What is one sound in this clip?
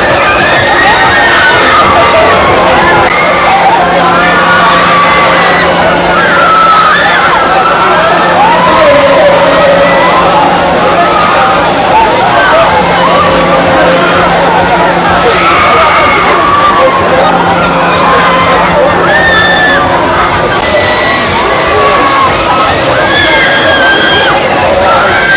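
A fairground ride whirs as it spins.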